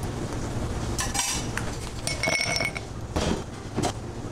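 Ice cubes clink into a glass.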